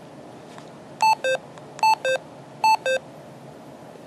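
A handheld radio beeps short electronic tones as its keys are pressed.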